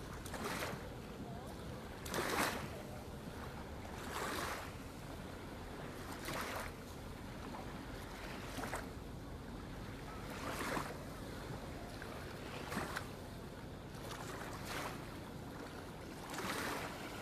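Small waves wash gently onto a shore every couple of seconds.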